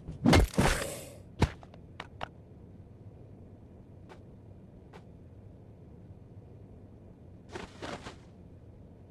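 A game character strikes enemies with sharp, punchy hits in short bursts.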